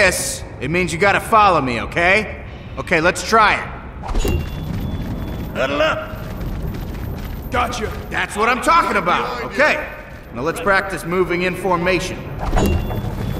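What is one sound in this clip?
A man with a gruff voice shouts boisterously.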